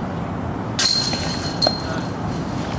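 Metal chains rattle briefly as a flying disc strikes a basket.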